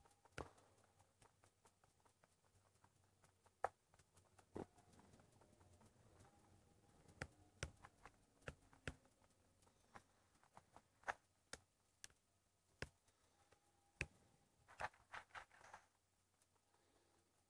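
Short clicks and taps come from a small game speaker.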